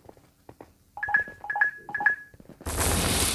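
A game countdown beeps three times in quick succession.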